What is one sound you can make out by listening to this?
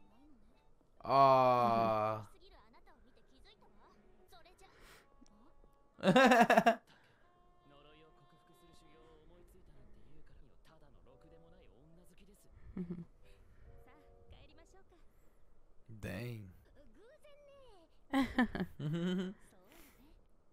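A young man talks close into a microphone.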